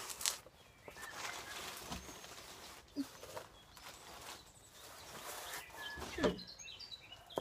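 Someone shuffles about close by, brushing against rustling tent fabric.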